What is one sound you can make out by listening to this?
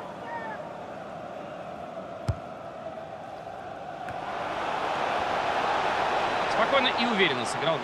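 A stadium crowd roars, swelling louder.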